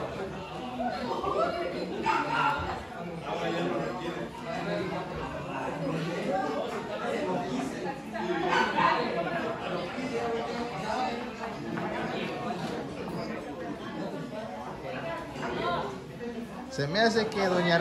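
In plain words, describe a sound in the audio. A young woman talks with animation to a small group.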